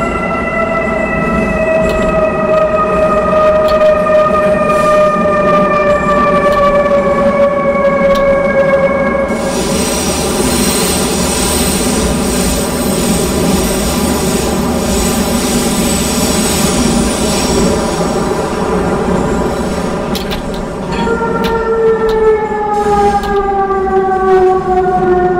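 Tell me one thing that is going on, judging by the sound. A train rumbles steadily along the rails through a tunnel.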